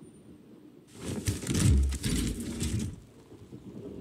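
A heavy metal case unlatches and its lid swings open with a clank.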